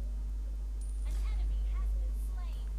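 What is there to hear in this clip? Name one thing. Game effects burst and chime in a quick flurry.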